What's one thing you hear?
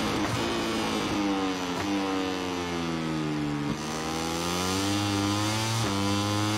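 A motorcycle engine drops in pitch while braking, then revs back up.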